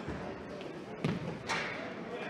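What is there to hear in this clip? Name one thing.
A futsal ball is kicked hard on an indoor court.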